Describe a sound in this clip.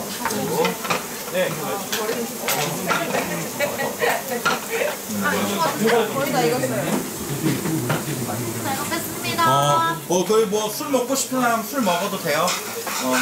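Young women chat and laugh close by.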